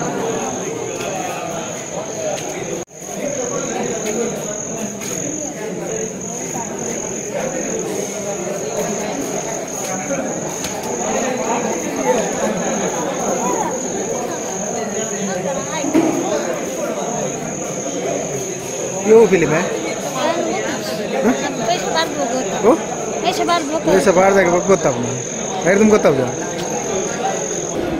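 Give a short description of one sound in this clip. People chatter and call out in a large echoing hall.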